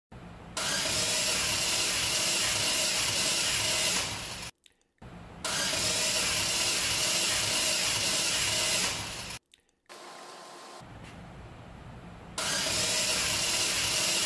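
An engine cranks over in loud, rhythmic bursts.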